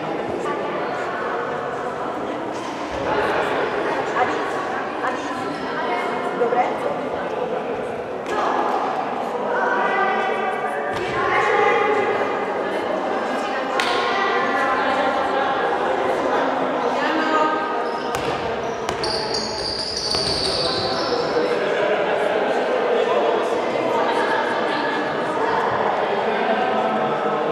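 Girls chatter in a large echoing hall.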